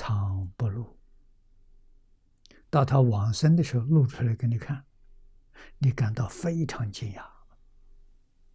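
An elderly man speaks calmly and slowly into a close microphone, in short phrases with pauses.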